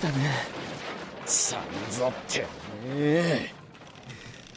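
A man snarls angrily.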